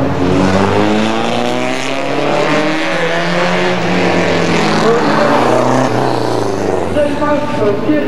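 A rally car engine roars and revs loudly as the car approaches and passes.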